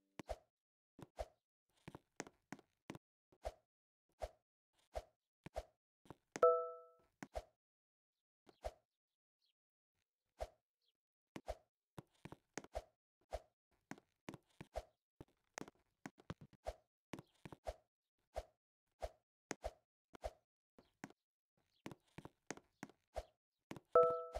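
A game character's footsteps tap quickly and steadily.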